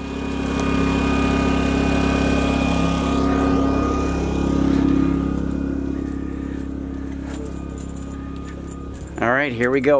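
A generator engine hums steadily close by.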